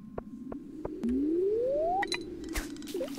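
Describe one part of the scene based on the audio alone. A fishing line whizzes out with a rising whirr.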